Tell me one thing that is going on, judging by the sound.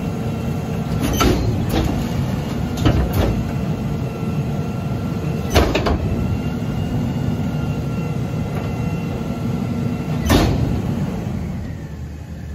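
A garbage truck's hydraulics whine steadily.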